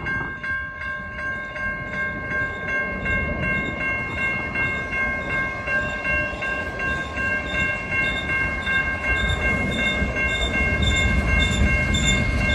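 A level crossing bell rings.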